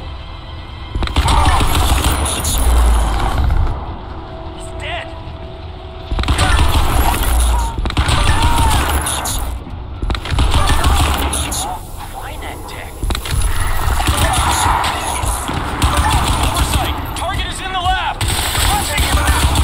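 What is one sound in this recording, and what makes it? Gunfire rattles in rapid, loud bursts.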